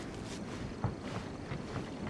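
Footsteps patter on wooden planks.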